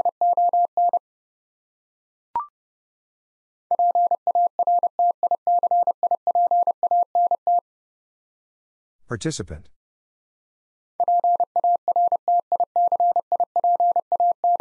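A telegraph key taps out fast bursts of Morse code beeps.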